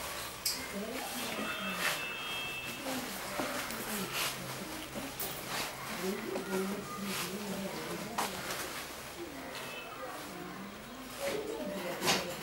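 Cloth rustles and scrapes under a man's hands.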